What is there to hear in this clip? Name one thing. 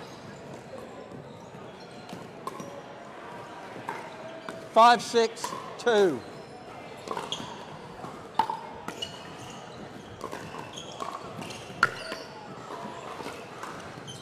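Paddles strike a plastic ball with sharp pops in a large echoing hall.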